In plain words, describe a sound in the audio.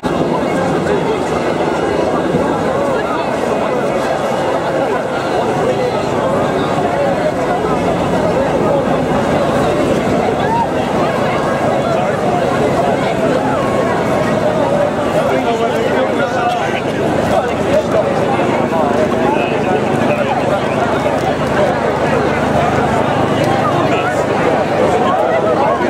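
A large crowd of men and women chatters loudly all around, close by.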